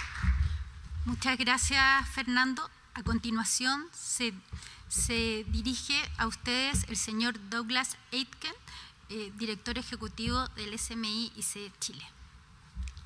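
A woman speaks calmly into a microphone over loudspeakers.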